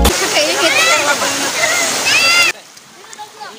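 Girls shout and squeal excitedly close by.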